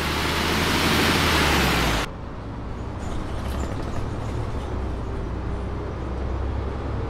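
A bus engine rumbles low and steadily.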